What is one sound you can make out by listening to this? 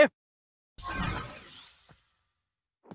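A swirling whoosh sweeps past.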